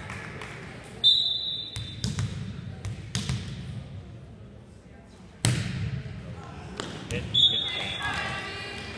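A referee's whistle blows short, sharp blasts in a large echoing hall.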